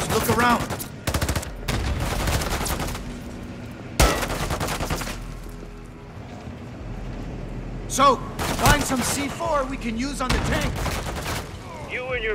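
Rapid rifle gunfire rattles in close bursts.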